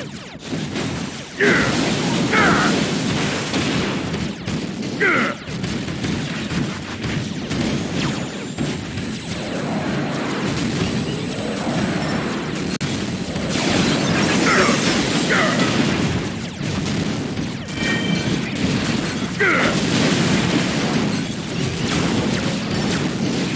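Metal clangs as robots strike each other.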